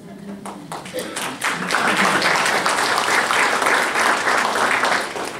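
An elderly man speaks to an audience.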